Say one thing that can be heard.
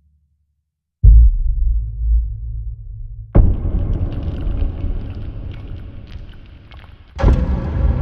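A heavy low impact thuds and rumbles.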